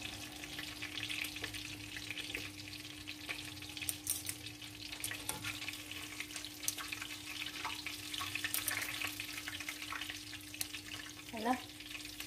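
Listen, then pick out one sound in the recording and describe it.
Oil sizzles and crackles steadily in a frying pan.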